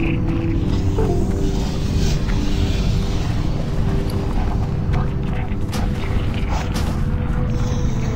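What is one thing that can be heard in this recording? Lava bubbles and rumbles steadily.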